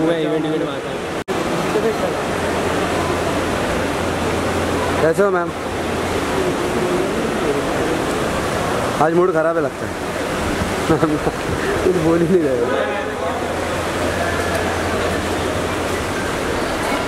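A busy crowd murmurs in a large echoing hall.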